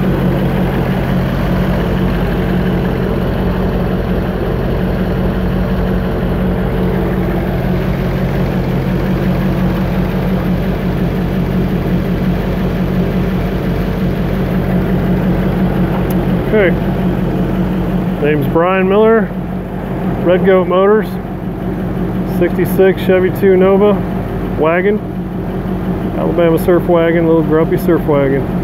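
A car engine idles with a steady, deep rumble close by.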